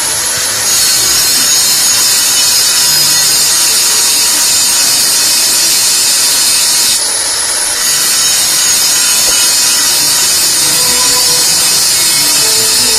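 An angle grinder whines loudly as it grinds steel.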